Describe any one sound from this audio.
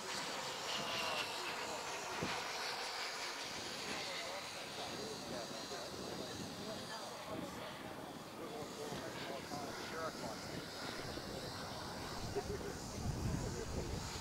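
A small model jet engine whines high overhead.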